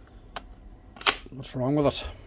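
A battery clicks into a cordless drill.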